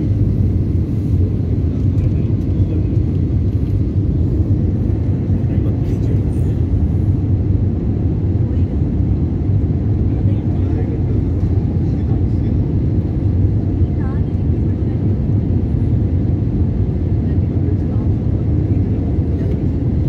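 An aircraft cabin hums with a steady, deep engine roar.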